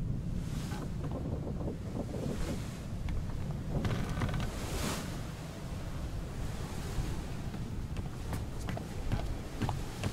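Sea waves wash and roar nearby.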